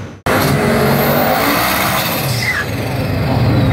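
Tyres screech and spin as the car burns out.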